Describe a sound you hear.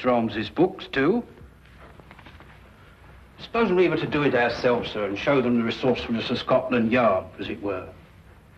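A middle-aged man reads aloud clearly, close by.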